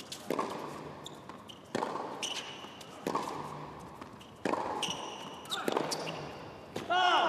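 Sneakers squeak sharply on a hard court.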